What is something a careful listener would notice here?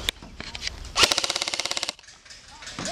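A gun fires a rapid burst.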